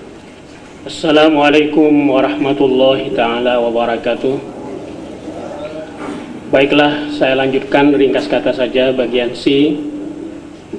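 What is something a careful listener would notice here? A man chants loudly into a microphone.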